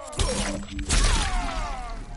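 Heavy blows land with wet, splattering thuds.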